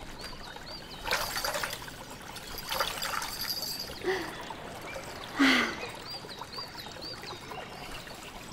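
A hand splashes in shallow water.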